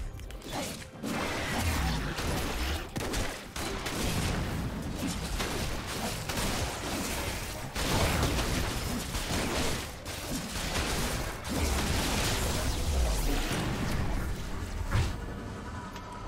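Game spell effects whoosh and crash as figures fight.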